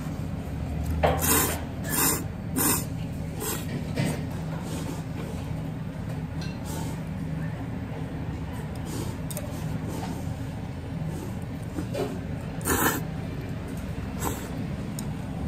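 Noodles are slurped loudly in short bursts.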